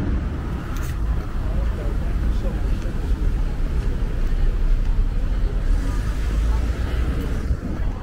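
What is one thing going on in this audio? Cars drive by on a nearby street with a low rumble.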